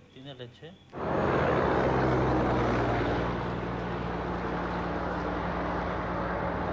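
A tanker truck rumbles as it drives away down a road.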